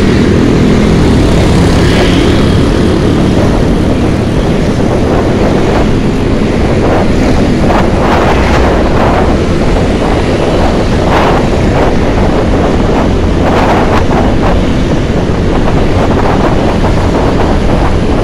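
Other motorcycles buzz past nearby.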